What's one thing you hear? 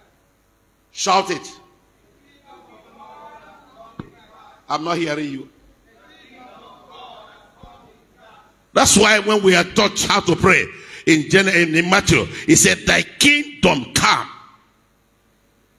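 A man preaches with animation through a microphone and loudspeakers in an echoing hall.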